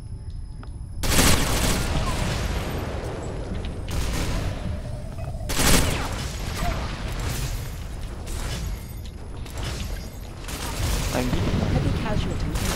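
Gunfire rattles in sharp bursts.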